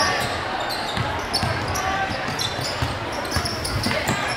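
A basketball is dribbled on a hardwood floor.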